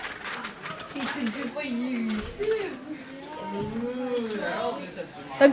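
A child talks excitedly nearby.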